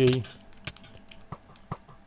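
Sword blows land with short, sharp clicks in a video game.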